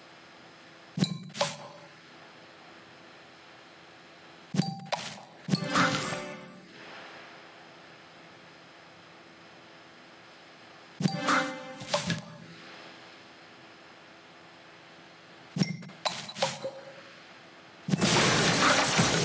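Video game sound effects chime and burst as candies are matched.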